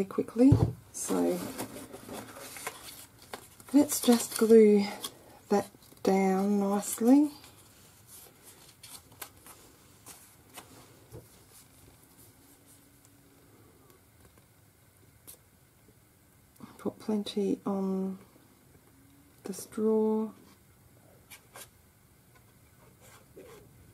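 Paper rustles softly as it is folded and handled.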